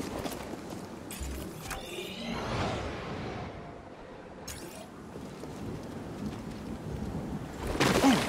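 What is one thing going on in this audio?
Footsteps scuff on rock.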